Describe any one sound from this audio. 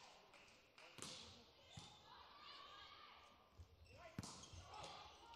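A volleyball is struck hard several times in a large echoing hall.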